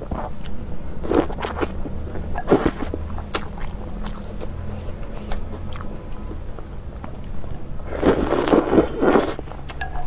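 A young woman slurps noodles loudly, close to a microphone.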